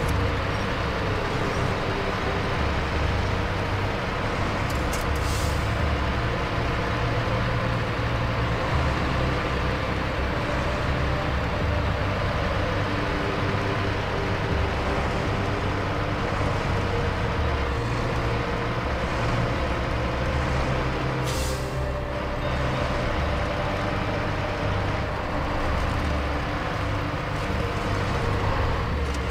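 A heavy truck engine rumbles steadily as the truck drives through snow.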